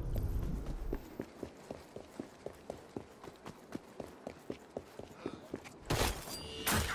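Footsteps tap quickly on cobblestones.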